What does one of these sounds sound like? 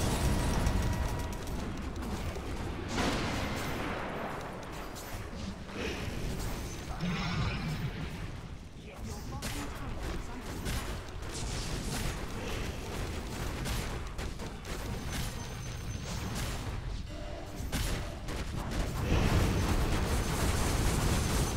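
Game spells crackle and burst in a busy fight.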